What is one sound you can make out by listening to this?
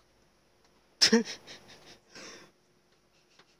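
A young man laughs and groans close to a microphone.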